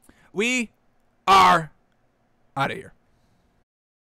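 A man speaks with animation close to a microphone, in short bursts.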